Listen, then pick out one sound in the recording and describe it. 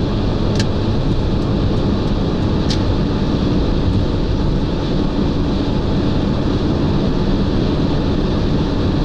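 A car drives fast along a highway with steady road and wind noise.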